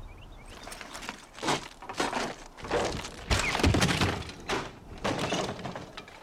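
A wooden door creaks and bangs open.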